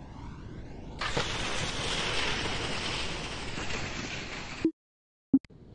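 Skis land and slide hissing over snow.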